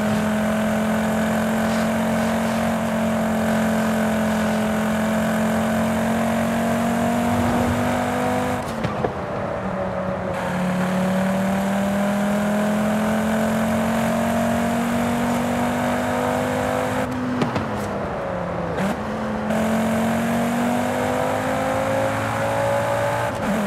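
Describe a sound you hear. A car engine roars steadily at high speed, dropping briefly in pitch at each gear change.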